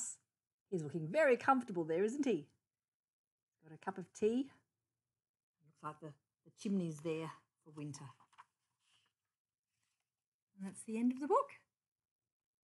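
An elderly woman reads aloud with animation, close by.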